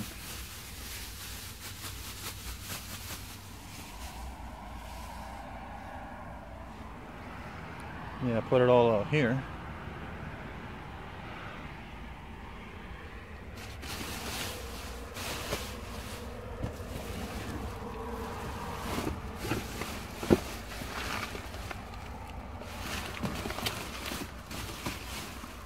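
Plastic bags rustle and crinkle close by as they are handled.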